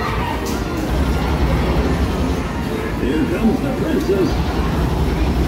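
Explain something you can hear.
An arcade shooting game plays loud gunfire and explosions through its speakers.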